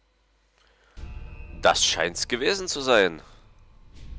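Game menu sounds whoosh and sweep as options are chosen.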